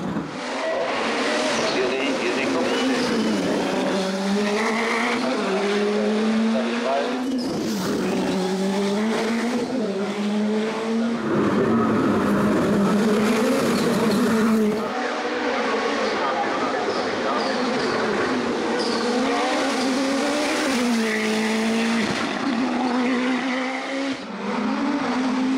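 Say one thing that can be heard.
A turbocharged four-cylinder sports prototype race car accelerates hard through the gears.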